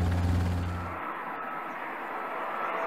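A jet airliner roars as it comes in to land.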